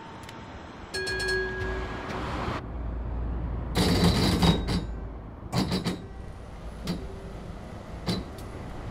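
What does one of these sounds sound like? A tram's motor rumbles deeply as the tram pulls away.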